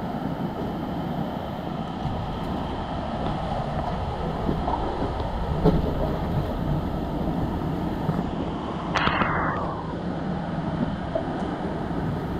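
Water rushes down a plastic water slide.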